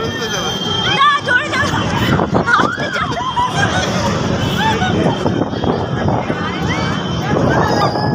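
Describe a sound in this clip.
A young woman laughs close to the microphone.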